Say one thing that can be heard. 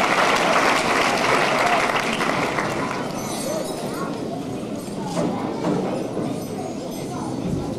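Children chatter and murmur in an echoing hall.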